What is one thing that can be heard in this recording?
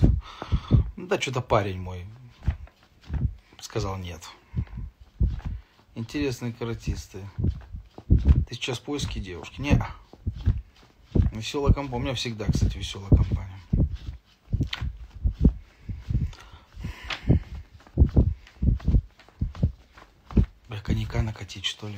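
A young man talks calmly and close to the microphone.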